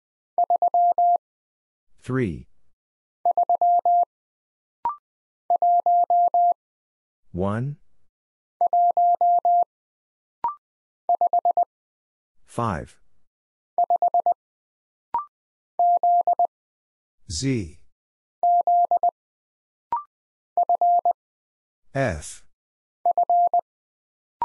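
Morse code beeps out in quick bursts of steady tones.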